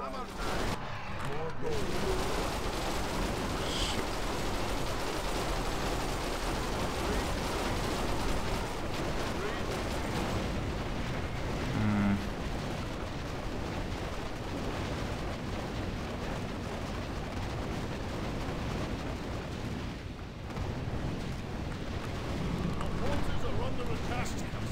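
Video game battle effects crackle and zap continuously.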